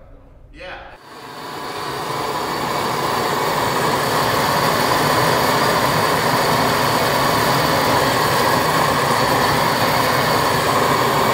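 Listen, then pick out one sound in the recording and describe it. A gas torch roars loudly and steadily.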